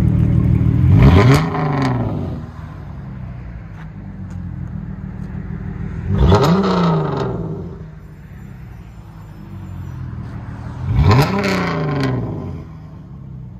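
A car engine revs sharply three times, roaring up and then falling back.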